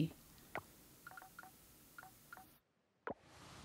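Soft menu clicks chime briefly.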